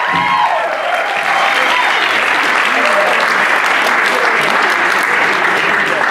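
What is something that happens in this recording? A group of young singers sings together without instruments in a large echoing hall.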